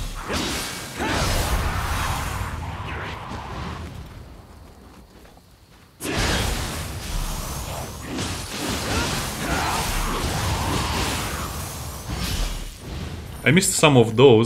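Swords clash and strike in a fierce fight.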